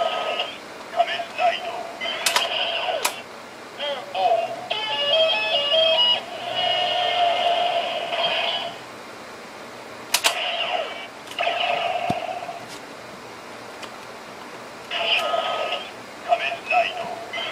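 Plastic parts of a toy belt click and snap.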